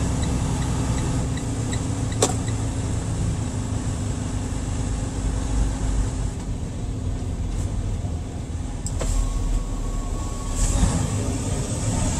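A truck engine rumbles steadily as the truck drives closer.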